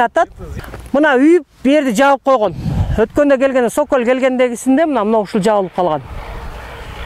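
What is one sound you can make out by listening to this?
A woman speaks calmly and clearly outdoors.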